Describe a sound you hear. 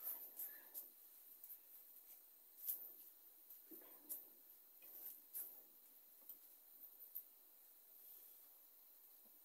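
Fingers rub and scratch through hair close by.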